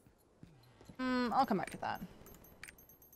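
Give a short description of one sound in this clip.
A young woman speaks briefly and softly into a close microphone.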